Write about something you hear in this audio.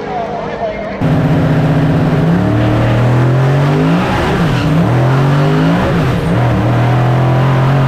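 A race car engine roars from inside the car, its revs climbing again and again through gear changes.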